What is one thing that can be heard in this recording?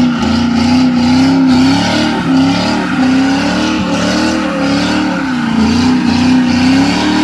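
A car engine roars loudly at high revs, rising and falling.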